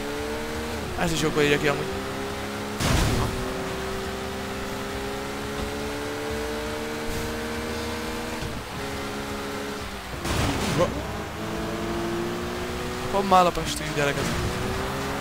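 Tyres screech on wet road.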